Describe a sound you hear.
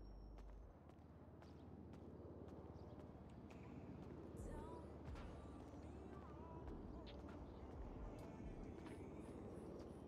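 Footsteps tap on a hard concrete floor in a large echoing space.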